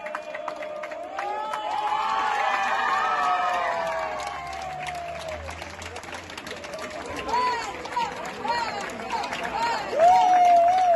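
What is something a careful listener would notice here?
A crowd of people cheers and screams with excitement outdoors.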